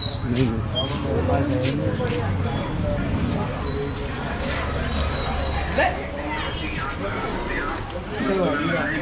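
Men's voices chatter nearby.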